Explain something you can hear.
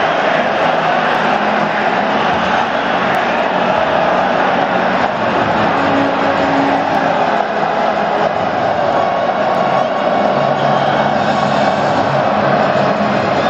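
A large crowd sings together in unison.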